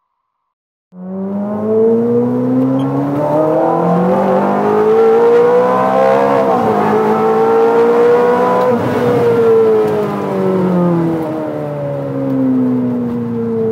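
A car engine roars as it accelerates, its pitch rising and falling through the gears.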